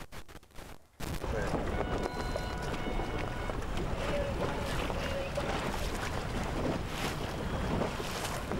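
Wind rushes across open water.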